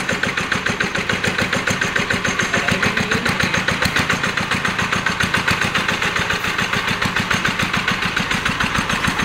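A single-cylinder diesel engine runs with a fast, steady chugging close by.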